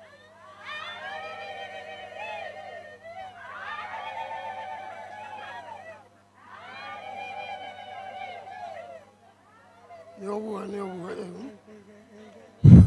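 An elderly woman sings in a high voice.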